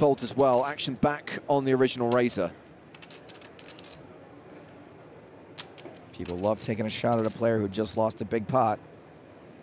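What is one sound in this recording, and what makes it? Poker chips click together as a player shuffles them.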